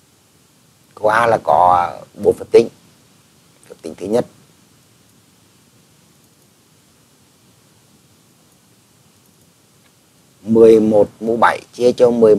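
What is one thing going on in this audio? An elderly man speaks calmly into a microphone, explaining in short phrases with pauses.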